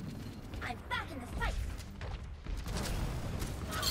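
A mech's thrusters roar.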